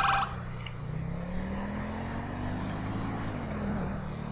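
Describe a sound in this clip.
A car engine rises in pitch as it speeds up.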